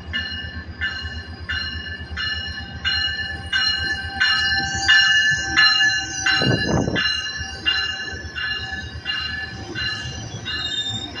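A locomotive bell clangs steadily over and over.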